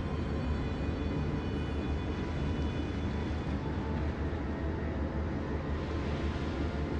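A warship's engines rumble low and steady.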